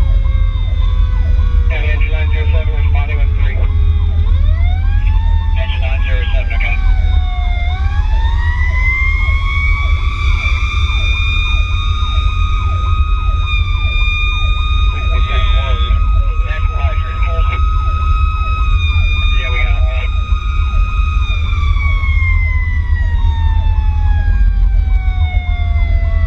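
A motorcycle engine drones steadily, rising and falling in pitch as it changes gears.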